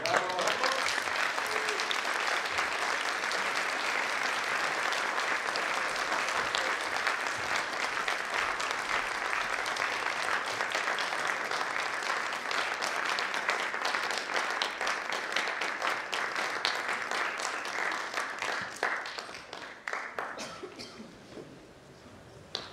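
An audience claps loudly in a large hall, and the applause slowly fades.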